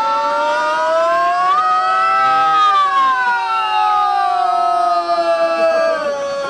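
An accordion plays steady chords.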